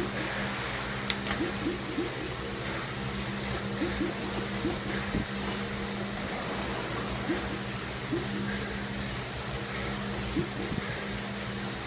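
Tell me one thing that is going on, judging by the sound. An indoor bike trainer whirs steadily as pedals turn.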